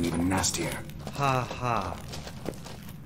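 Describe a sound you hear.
A man laughs briefly.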